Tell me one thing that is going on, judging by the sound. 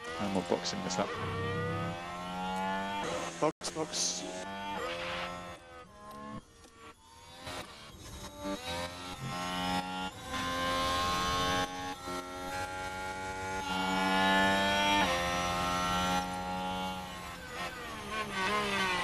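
A racing car engine screams at high revs, rising and dropping in pitch as it shifts gears.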